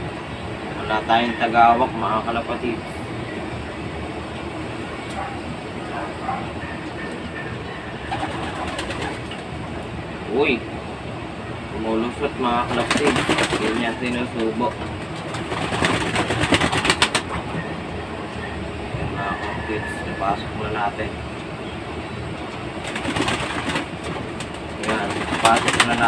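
A young man talks calmly close by, in bursts.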